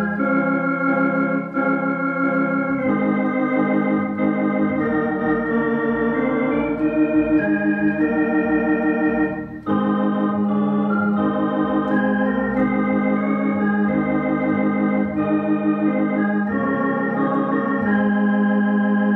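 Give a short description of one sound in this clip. An electric organ plays a lively melody with sustained chords.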